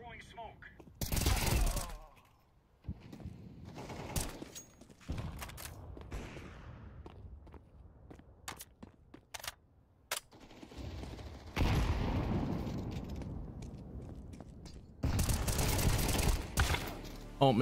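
Rapid rifle gunfire rattles close by.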